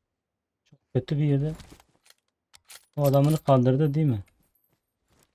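A young man speaks loudly and with animation into a microphone close by.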